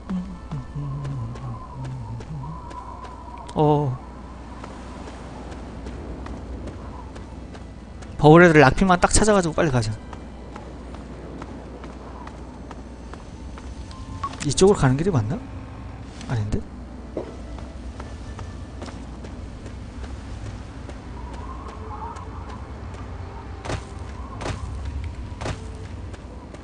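Footsteps crunch over gravel.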